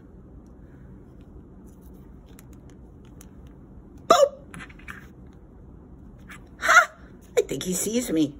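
Paper rustles softly as fingers press it flat.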